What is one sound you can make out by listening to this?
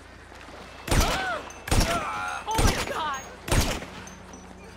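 A silenced rifle fires several sharp shots.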